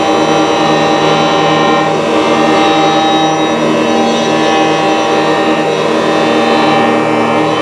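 Synthesized electronic tones drone in layers, shifting slowly.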